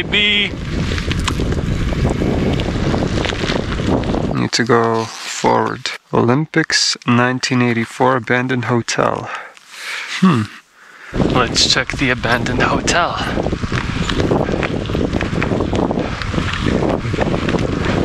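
Wind rushes loudly past, buffeting the microphone.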